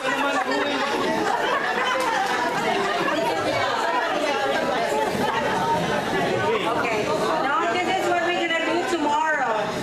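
Several adults chatter and talk over one another close by, indoors.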